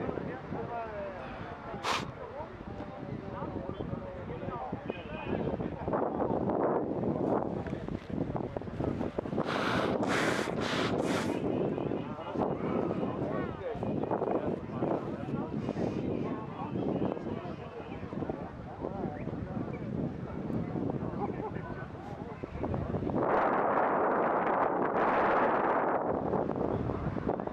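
Spectators at a distance shout and cheer outdoors.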